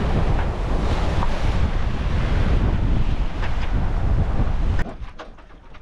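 Strong wind blows.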